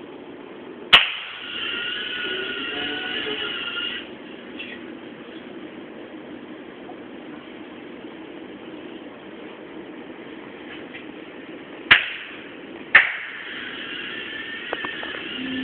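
A small robot's motors whir as it rolls across a hard floor.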